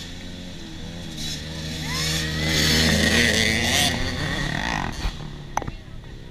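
A dirt bike engine roars closer, passes nearby and fades away.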